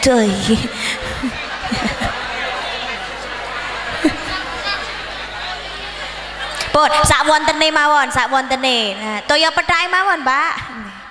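A young woman speaks with animation through a microphone, echoing through loudspeakers.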